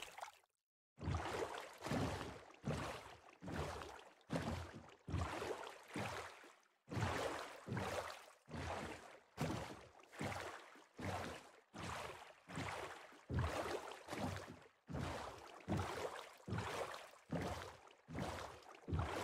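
Oars splash through water in a steady rhythm as a boat rows along.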